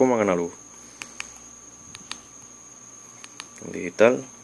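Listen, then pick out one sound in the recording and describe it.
Phone keys click softly as they are pressed.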